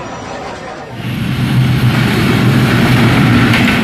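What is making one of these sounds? A train rumbles past loudly on the tracks.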